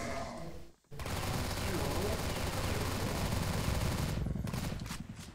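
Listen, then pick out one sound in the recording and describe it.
Pistols fire in rapid bursts.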